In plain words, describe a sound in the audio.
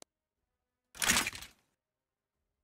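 A short, bright whooshing burst sounds once.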